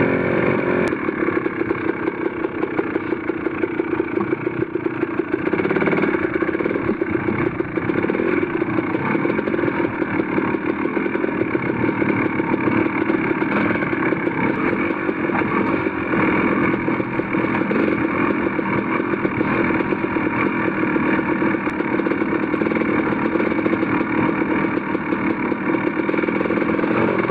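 Tyres crunch over rough ground.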